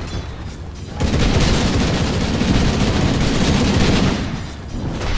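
Magic blasts boom loudly.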